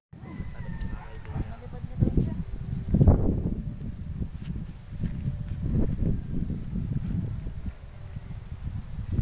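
Wind blows and rumbles across an open space outdoors.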